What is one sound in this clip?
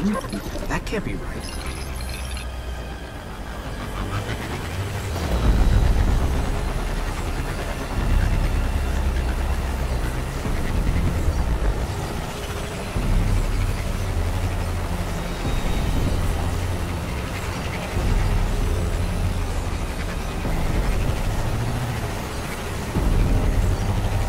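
A hover vehicle's engine roars and whooshes steadily, swelling and easing.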